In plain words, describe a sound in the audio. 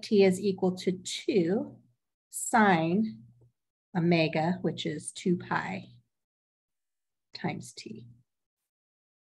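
A man explains calmly, close to a microphone.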